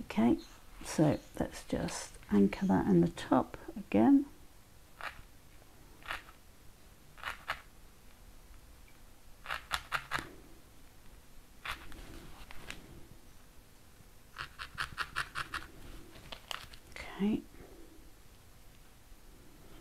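Fingers handle a stiff card with soft rustles and taps.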